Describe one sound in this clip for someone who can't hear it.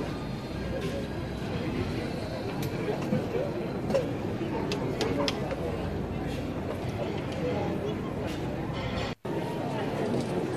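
Men and women chatter in a busy outdoor crowd.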